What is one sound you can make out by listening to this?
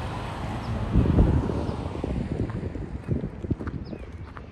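A car passes by on a road.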